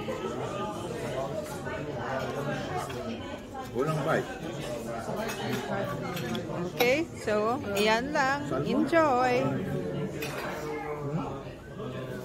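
Cutlery scrapes and clinks on a plate.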